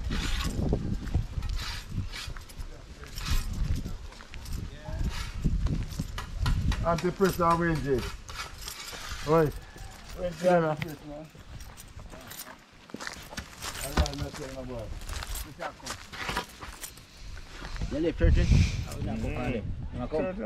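Footsteps crunch on dry dirt and gravel.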